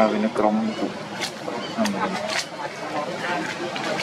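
A monkey smacks its lips softly.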